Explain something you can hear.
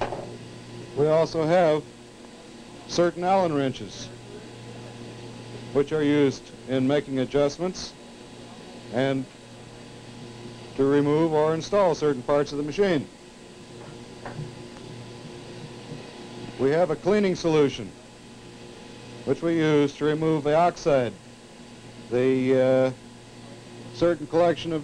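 A middle-aged man speaks calmly in short phrases, as if explaining.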